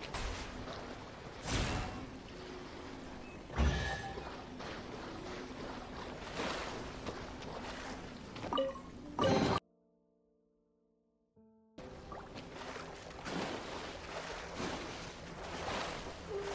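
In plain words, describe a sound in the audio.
Water splashes underfoot as someone wades through shallows.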